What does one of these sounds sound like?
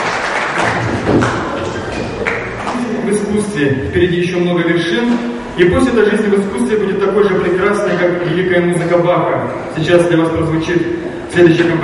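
A young man speaks through a microphone in an echoing hall, reading out.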